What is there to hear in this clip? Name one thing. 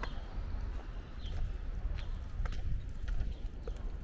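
Footsteps tap on a pavement nearby.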